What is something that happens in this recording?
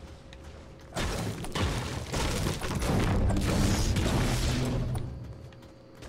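A pickaxe smashes against something hard over and over.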